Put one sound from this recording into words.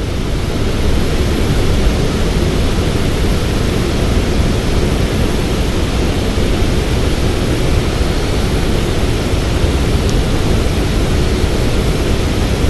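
Wind blusters steadily outdoors, rumbling across the microphone.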